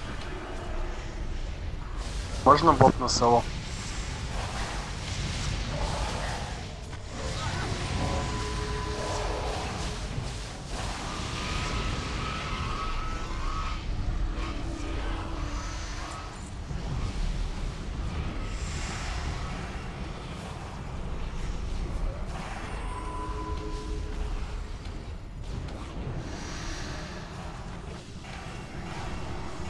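Magic spells whoosh and crackle during a battle.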